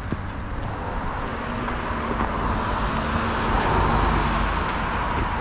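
A car drives past on a wet road, its tyres hissing louder as it nears.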